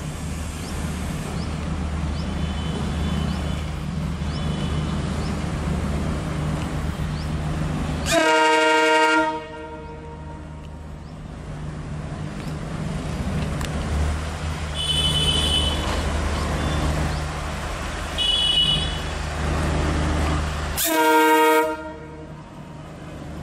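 A diesel locomotive engine rumbles and throbs steadily nearby.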